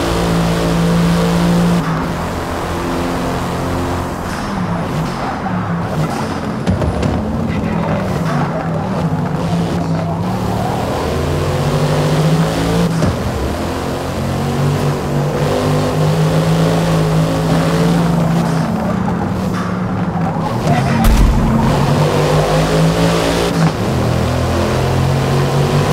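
A car engine roars loudly, revving up and down through gear changes.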